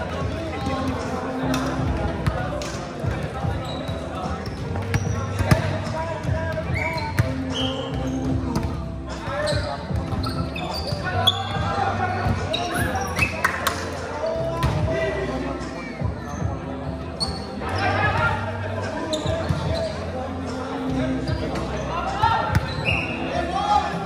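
Young men and women call out to each other across a large echoing hall.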